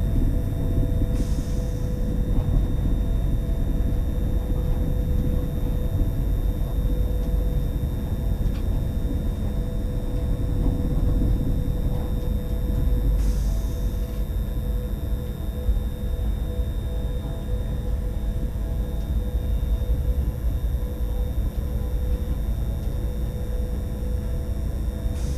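Train wheels clack over rail joints.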